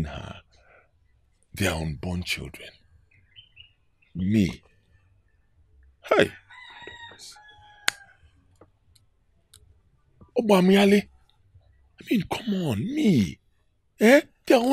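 A middle-aged man speaks calmly and closely.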